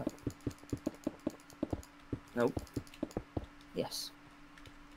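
Quick knocks and taps sound as blocks are broken and placed.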